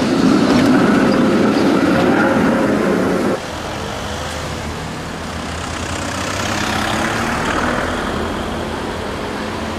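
Car traffic hums along the street.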